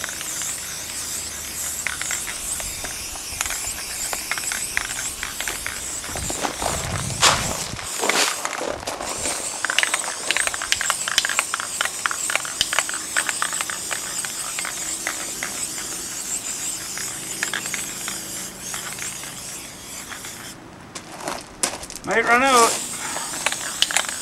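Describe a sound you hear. A spray can hisses steadily in short and long bursts.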